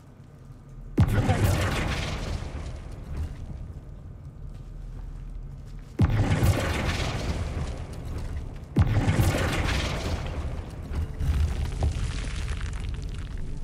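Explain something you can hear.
A magic spell bursts with a sudden loud crash and a rumbling roar that slowly fades.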